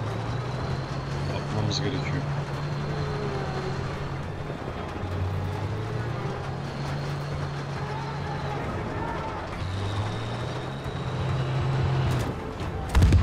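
A tank engine rumbles and whines steadily.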